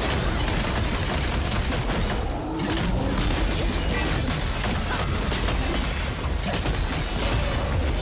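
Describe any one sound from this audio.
Magic blasts and weapon strikes crash and boom in rapid bursts.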